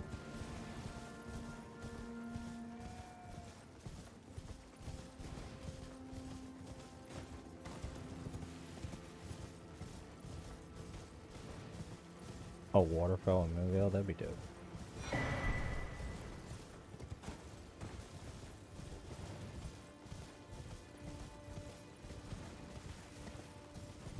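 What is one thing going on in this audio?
A horse's hooves thud steadily at a gallop.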